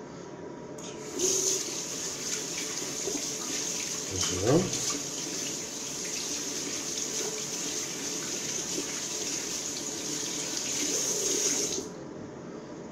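Water runs and splashes as a man rinses his head.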